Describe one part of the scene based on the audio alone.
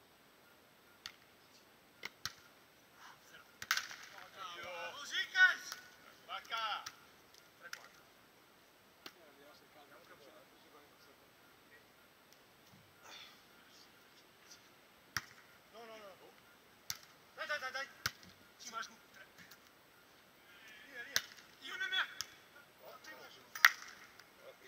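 Players' hands smack a volleyball with sharp thuds.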